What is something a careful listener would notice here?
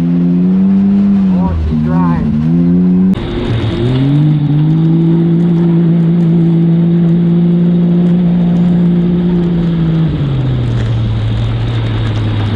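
Tyres crunch over a dirt track.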